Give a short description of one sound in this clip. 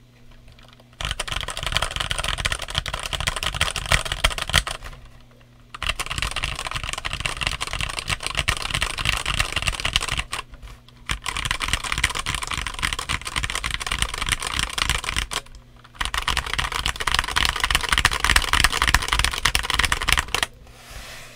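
Keys on a mechanical keyboard clatter rapidly under fast typing.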